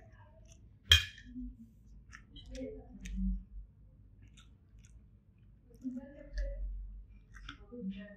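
A spoon scrapes and clinks against a metal plate.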